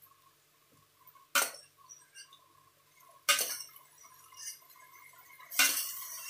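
Water drips and splashes back into a pot.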